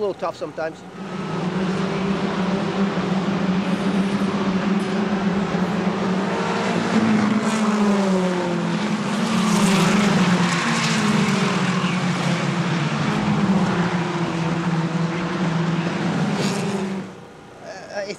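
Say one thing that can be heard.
Race car engines roar loudly as cars speed past.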